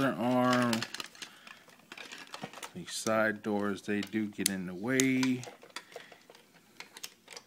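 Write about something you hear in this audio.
Plastic toy parts click and rattle as hands handle them close by.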